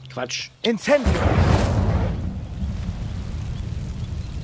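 A burst of flame roars up.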